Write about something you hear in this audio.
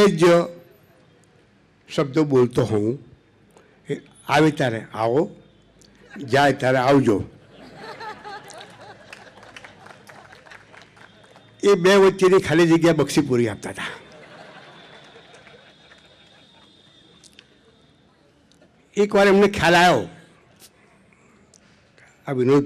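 An elderly man speaks slowly into a microphone, heard through a loudspeaker, with long pauses.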